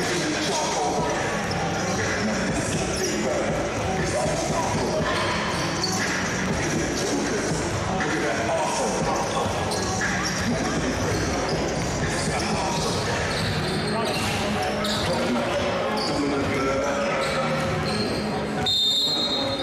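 A crowd chatters loudly in an echoing indoor hall.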